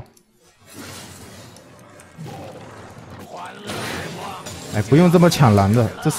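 Fantasy game spell effects whoosh and clash during a fight.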